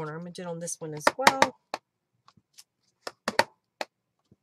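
A plastic case clicks and taps on a table.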